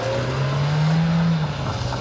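A car drives away over a paved path.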